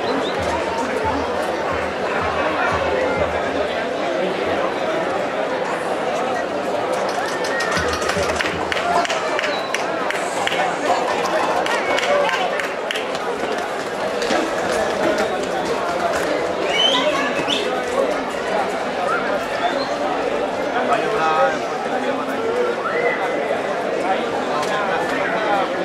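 Hooves clatter on the street as bulls run past.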